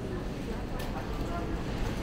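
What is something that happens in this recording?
Plastic flower wrapping rustles.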